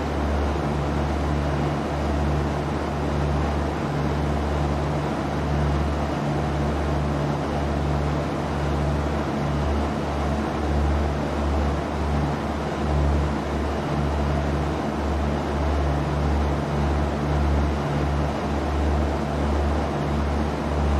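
Wind rushes steadily past the plane.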